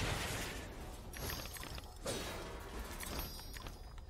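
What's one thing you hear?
A clay pot shatters.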